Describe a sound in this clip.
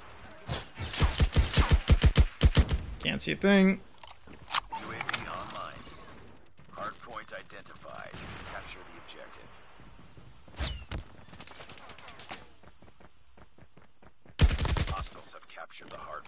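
Rapid bursts of gunfire ring out from a video game.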